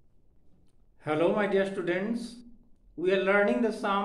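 A middle-aged man speaks calmly and clearly, close to the microphone.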